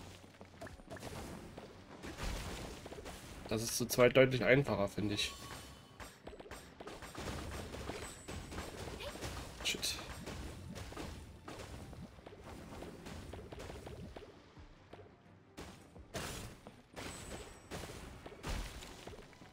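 Game effects chime and crackle as blocks shatter.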